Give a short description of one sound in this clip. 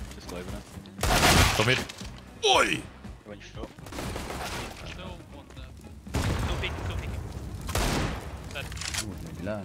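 Gunshots ring out in a video game.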